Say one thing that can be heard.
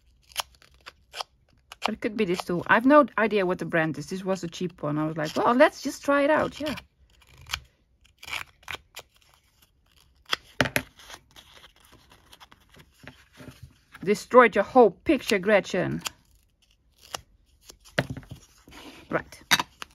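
Paper rustles and crinkles softly as it is handled.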